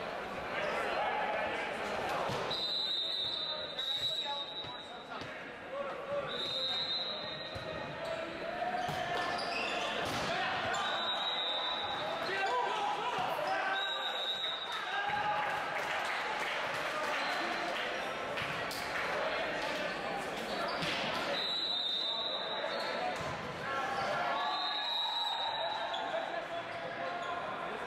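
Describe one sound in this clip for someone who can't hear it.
Players shout and call out to each other in a large echoing hall.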